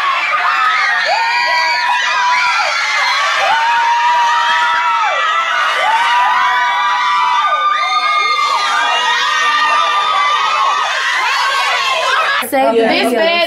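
A crowd of young people sings and shouts loudly.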